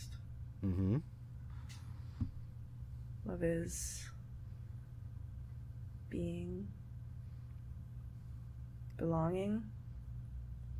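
A young woman speaks softly in short phrases close by.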